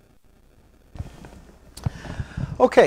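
A man sits down heavily in a leather chair.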